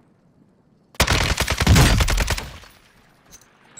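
A rifle fires a rapid, loud burst of shots.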